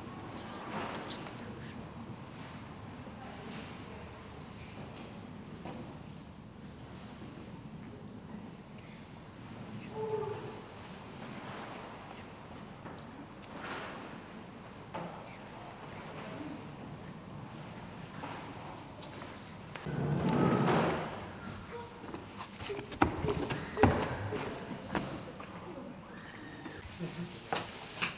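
A woman murmurs a quiet prayer nearby.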